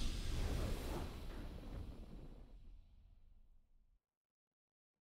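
A triumphant game victory fanfare swells and fades out.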